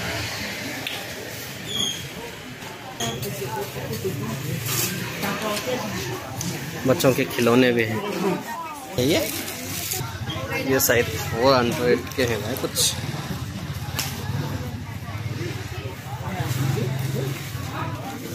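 Shoppers' voices chatter around an outdoor street market.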